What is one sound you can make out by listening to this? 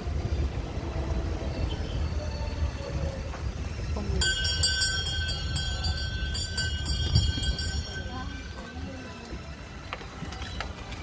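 An open electric sightseeing cart rolls along with a low rumble.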